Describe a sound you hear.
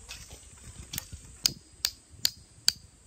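A hammer strikes a metal stake with sharp ringing taps.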